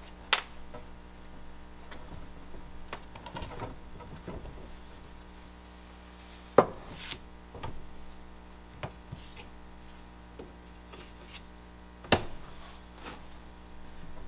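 Clay slabs are handled with sharp knocks and taps on a table.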